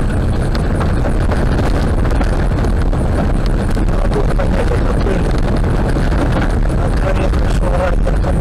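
Tyres rumble steadily over a gravel road.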